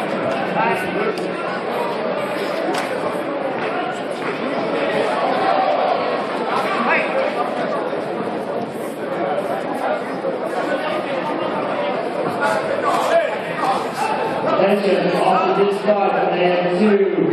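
Spectators nearby talk loudly.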